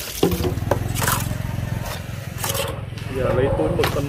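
Wet squid slap and squelch as they are lifted by hand.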